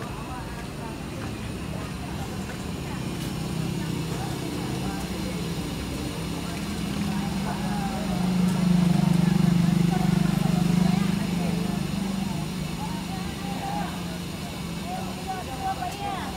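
A bus engine idles with a low, steady hum close by.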